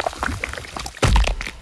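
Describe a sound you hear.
A heavy thud booms.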